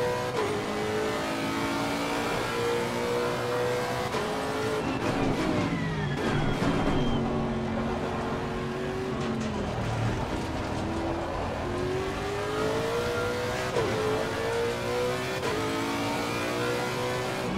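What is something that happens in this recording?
A racing car engine roars, revving up through the gears and dropping as it brakes.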